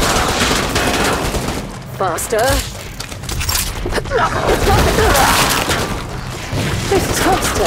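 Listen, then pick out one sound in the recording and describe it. Gunfire blasts rapidly and loudly.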